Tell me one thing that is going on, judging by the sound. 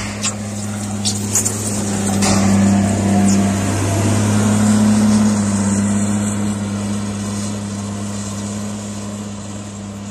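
A wheel loader's diesel engine rumbles steadily nearby and slowly fades as it drives away.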